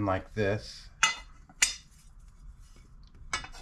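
Metal parts clink and knock against each other.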